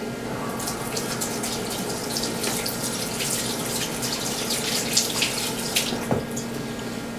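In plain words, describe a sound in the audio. Water runs from a tap and splashes into a sink.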